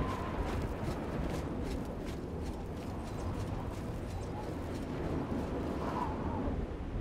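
Footsteps crunch over rough stone.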